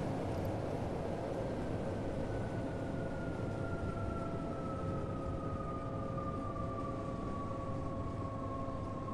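An electric train's motor whines, slowly falling in pitch as it slows.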